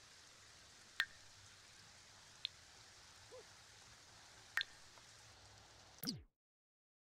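Soft interface clicks sound as game menus open and close.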